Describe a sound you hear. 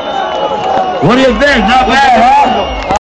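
A large crowd cheers and sings along loudly.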